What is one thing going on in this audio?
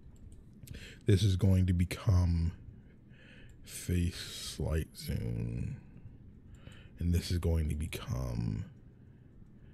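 A young man speaks close into a microphone with animation.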